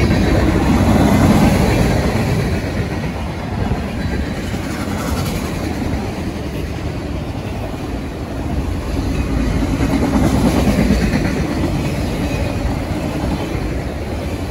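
A long freight train rumbles and clatters steadily past close by.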